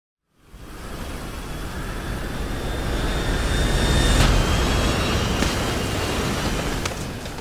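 A jet plane's engines roar louder as it approaches and passes close overhead.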